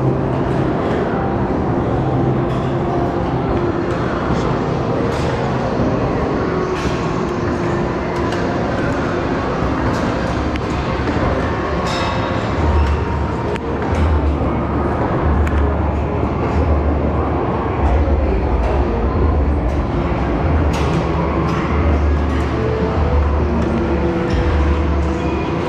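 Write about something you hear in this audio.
Arcade machines beep and jingle.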